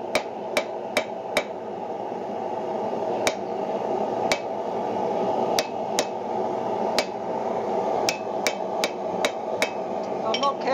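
A hammer strikes hot metal on an anvil with sharp ringing clangs.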